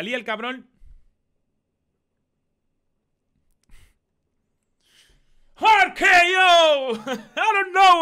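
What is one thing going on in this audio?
A young man speaks into a microphone with animation.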